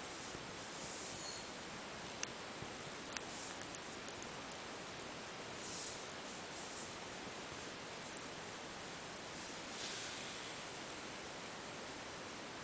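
A kitten licks and nibbles softly close by.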